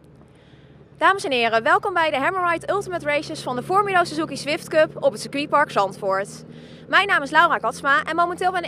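A young woman speaks brightly into a microphone, close by.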